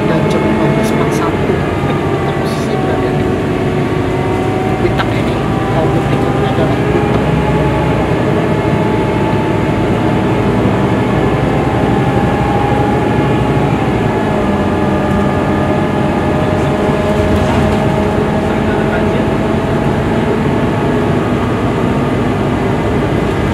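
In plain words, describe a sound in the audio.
A vehicle engine drones and whines as it drives along, heard from inside.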